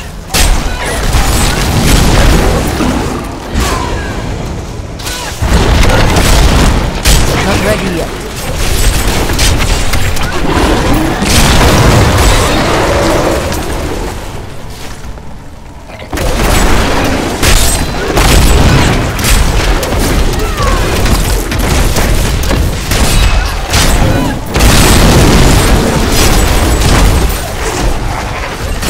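Spells blast and explode loudly in a game fight.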